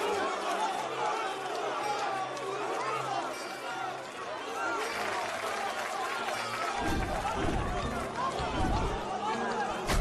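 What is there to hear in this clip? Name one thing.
A man shouts with excitement close by.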